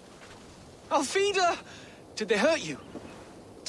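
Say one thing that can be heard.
A young man asks a question with concern.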